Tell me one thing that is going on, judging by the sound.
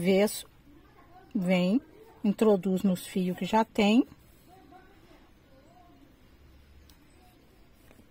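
A needle and thread pull softly through cloth.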